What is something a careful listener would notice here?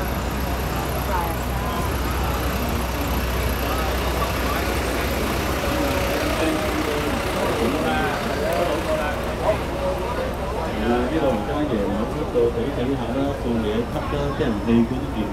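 Men and women chatter nearby on a busy street.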